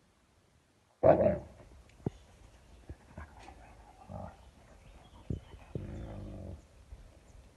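A woman talks softly to puppies nearby.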